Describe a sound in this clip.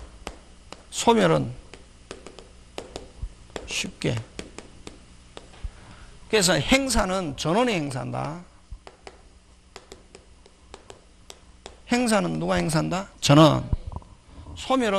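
A man speaks in bursts through a microphone, calmly, like a lecturer.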